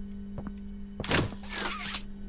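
A grabber cable shoots out and clanks against a metal barrel.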